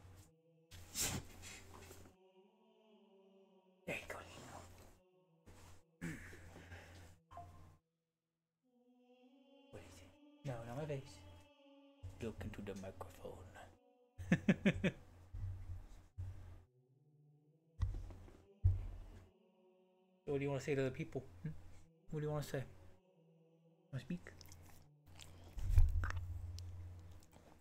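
A dog pants and snuffles close by.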